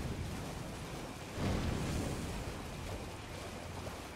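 Water splashes as someone runs through a shallow stream.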